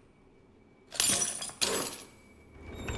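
Bolt cutters snap through a metal chain with a sharp clank.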